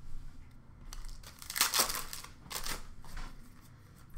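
Hands shuffle and slide trading cards against each other.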